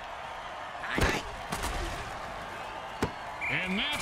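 Armoured players crash together with heavy thuds.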